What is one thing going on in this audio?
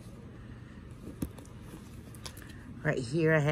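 Items rustle and clatter as a hand rummages in a bag.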